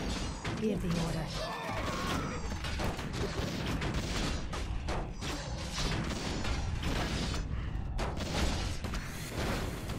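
Magic blasts crackle and burst.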